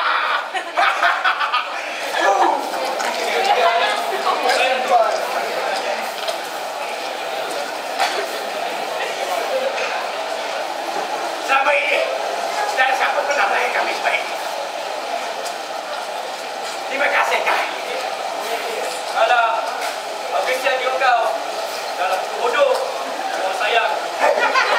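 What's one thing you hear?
A young man speaks loudly and with animation in a large, echoing room.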